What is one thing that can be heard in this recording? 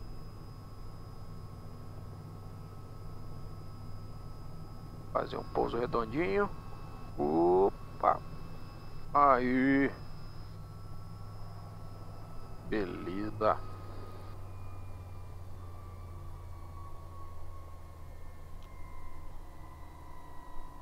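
A helicopter engine hums steadily.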